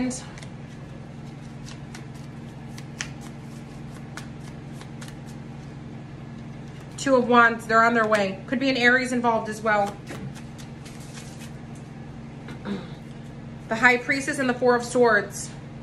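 Cards shuffle and riffle between a woman's hands.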